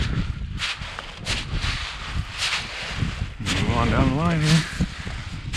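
Dry grass rustles and swishes as hands push through it close by.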